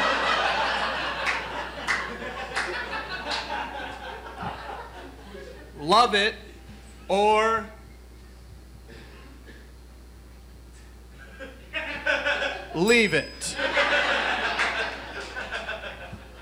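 An audience laughs and applauds in a hall.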